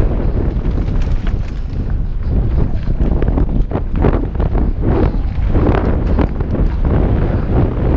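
A mountain bike rattles and clatters over bumps.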